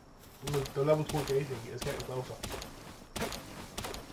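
An axe chops into a tree trunk.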